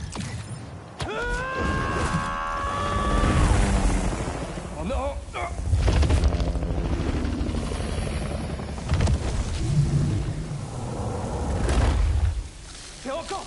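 A giant roars with a deep rumbling voice.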